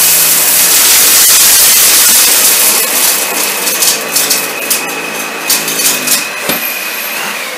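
Bits of debris rattle and click as a vacuum cleaner sucks them up.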